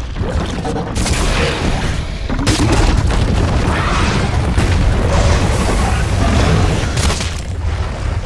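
Gunfire and energy blasts crackle and boom.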